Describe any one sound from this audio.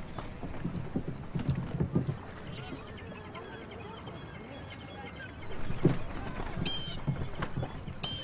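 A cart's wheels roll over wooden boards.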